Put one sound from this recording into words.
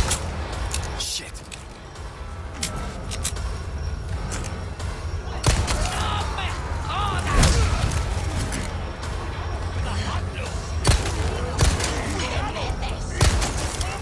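Villagers groan and shout as they charge.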